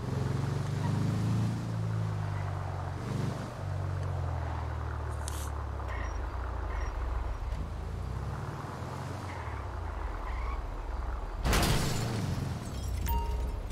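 A motorhome engine hums low as it drives slowly.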